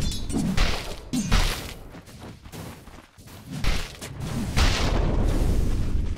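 Magic spells whoosh and crackle in short bursts.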